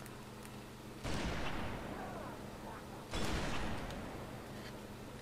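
Explosions boom and rumble away.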